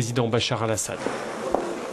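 A middle-aged man speaks briefly, close by.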